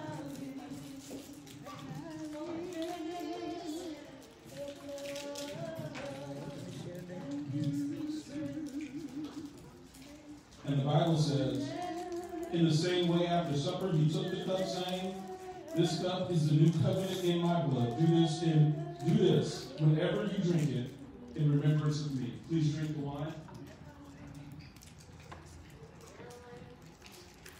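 An older man sings along through a microphone.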